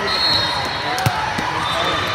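A ball is struck with a sharp smack.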